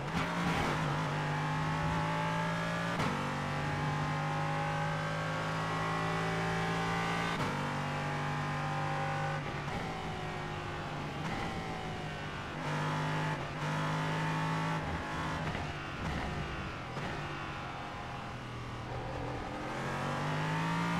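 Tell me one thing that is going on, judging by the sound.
A race car engine roars loudly, rising and falling in pitch as it shifts gears.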